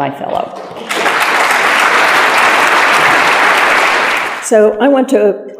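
A large audience applauds in a big room.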